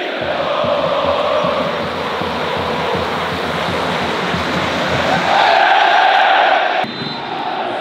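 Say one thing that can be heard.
A large crowd of fans chants and sings loudly in a stadium.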